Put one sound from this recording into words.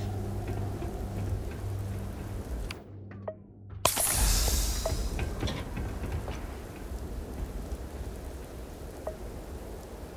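Footsteps clank on a metal ramp.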